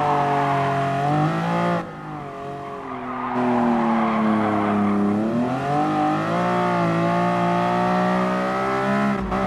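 A racing car engine roars, dropping in pitch as it slows for a bend and then revving up again.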